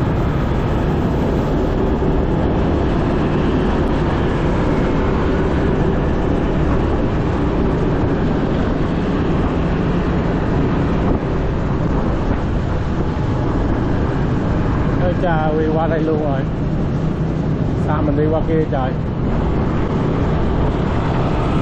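A motorbike engine hums steadily.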